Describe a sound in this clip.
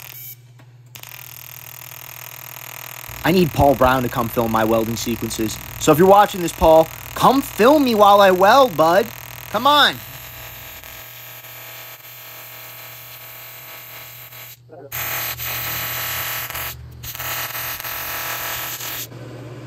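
A welding arc hisses steadily.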